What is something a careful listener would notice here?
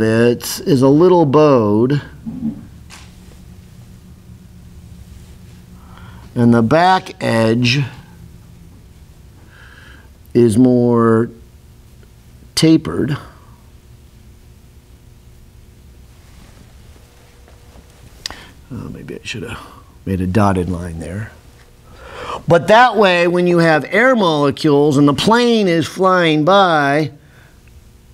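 A man speaks calmly in bursts, close by.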